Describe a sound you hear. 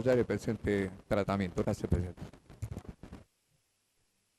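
A middle-aged man speaks calmly into a microphone, in short bursts.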